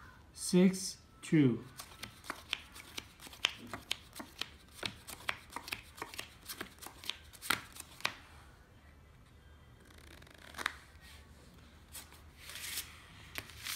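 Playing cards snap softly onto a felt table.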